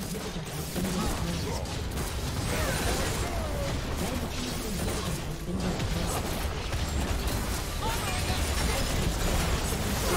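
Magic blasts and weapon clashes crackle in a busy battle.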